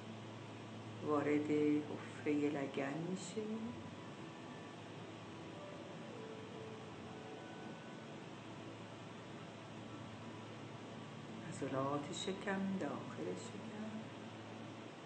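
An older woman speaks slowly and calmly, close to a phone microphone, with long pauses.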